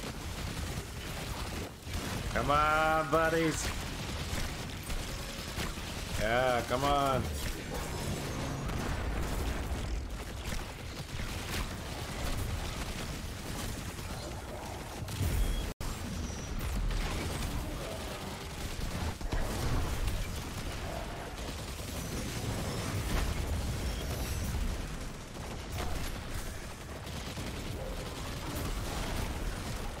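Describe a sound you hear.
Gunfire and energy blasts crackle rapidly throughout.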